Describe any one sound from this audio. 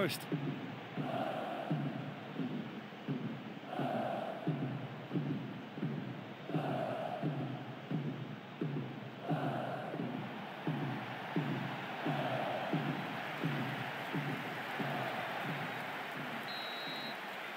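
A large crowd chants and claps in a steady rhythm.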